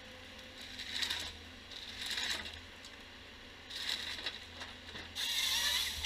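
Feed rollers push a log through a harvester head with a rattling grind.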